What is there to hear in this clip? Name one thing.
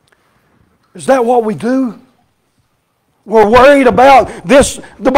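An older man speaks with animation through a microphone in a large echoing room.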